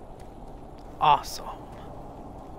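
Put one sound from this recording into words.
A young man makes a short exclamation close to a microphone.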